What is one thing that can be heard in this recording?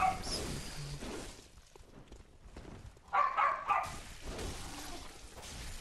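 Blades slash and strike in a close fight.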